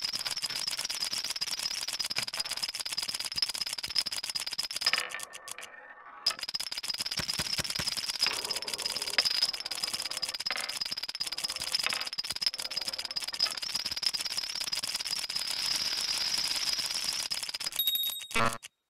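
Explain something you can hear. Wooden dominoes clatter as they topple in a long rapid chain.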